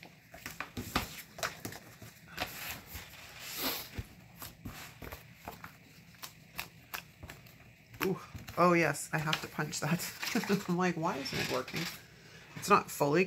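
Paper planner pages flip and rustle close by.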